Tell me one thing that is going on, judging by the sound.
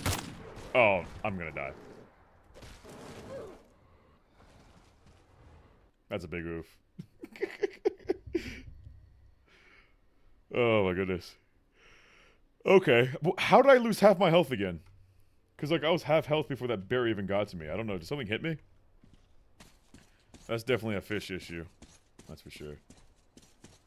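A man talks and laughs with animation, close to a microphone.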